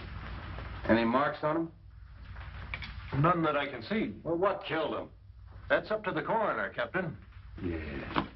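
A man speaks into a telephone.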